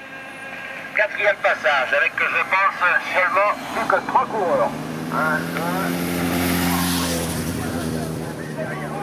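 A car drives past with its engine humming.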